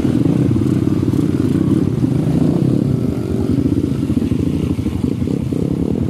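A dirt bike engine revs loudly close by as it rides through a river.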